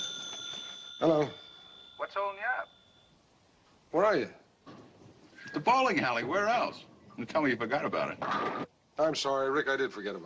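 A man speaks calmly into a telephone.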